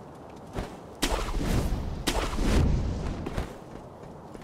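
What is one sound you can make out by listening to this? A grappling rope whooshes through the air.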